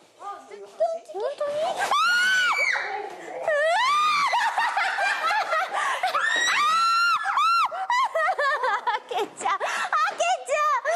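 Young women scream loudly and shrilly close by.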